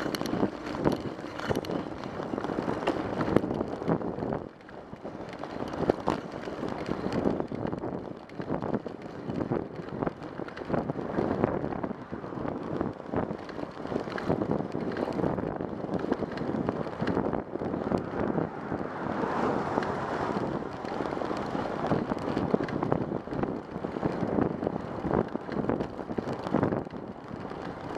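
Tyres roll steadily on a road surface.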